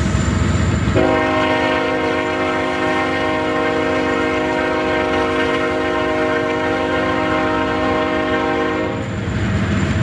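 A train horn blares with a long, steady blast.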